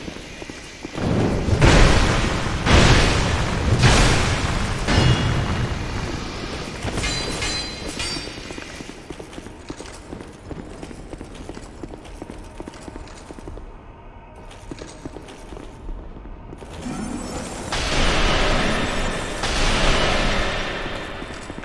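Magic spells burst with loud whooshing blasts.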